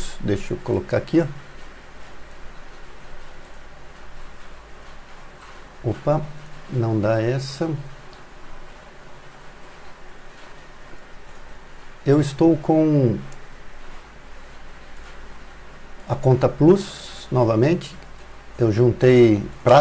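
A middle-aged man talks calmly into a close microphone, in short bursts with pauses.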